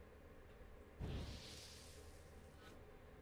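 Flames burst into a roaring blaze with a whoosh.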